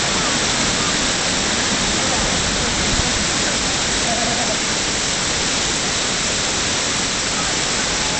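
Water rushes loudly over rocks close by.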